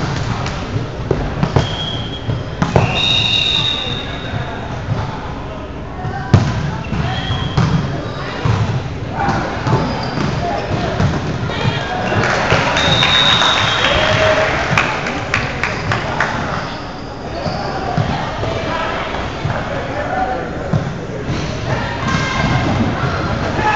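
Players shout and call out to each other, echoing in a large hall.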